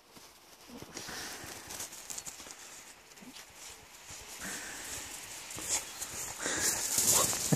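A dog's paws crunch through deep snow, growing louder as the dog runs closer.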